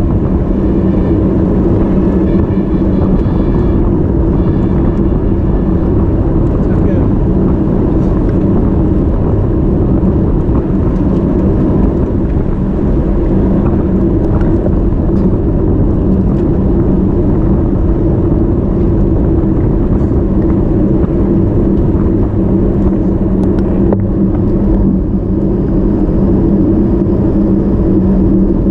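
Strong wind rushes and buffets loudly against the microphone.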